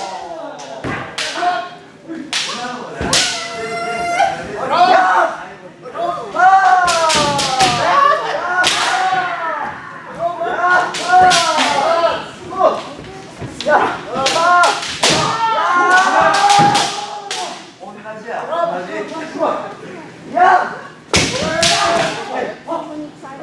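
Fencers shout loud, drawn-out cries.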